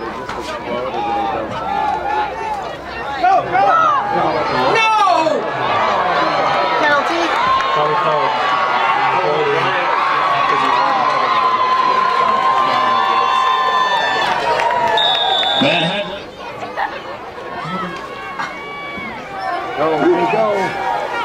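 A crowd cheers and shouts loudly outdoors.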